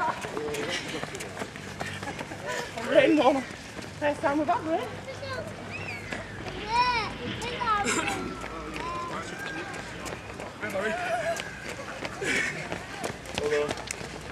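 Footsteps patter on paving as runners jog past.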